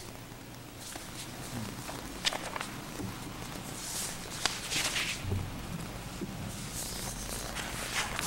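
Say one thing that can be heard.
A woman speaks quietly from a lectern.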